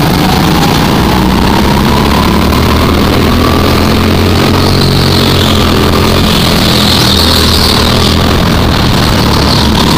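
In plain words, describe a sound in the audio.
A go-kart's small four-stroke engine buzzes at full throttle close by.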